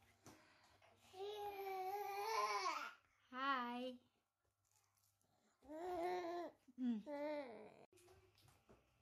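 A toddler squeals and babbles in a high voice close by.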